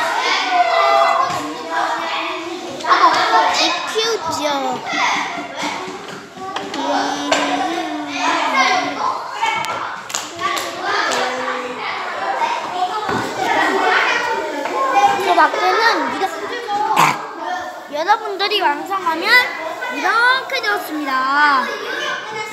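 Young girls talk and chatter with animation nearby.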